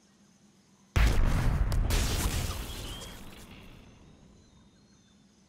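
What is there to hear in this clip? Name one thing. An explosion booms nearby, then its rumble slowly fades.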